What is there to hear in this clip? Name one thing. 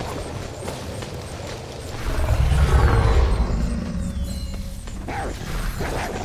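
Fire roars with a deep rumble.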